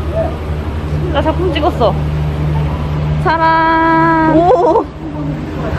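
A young woman speaks close by in a playful, animated voice.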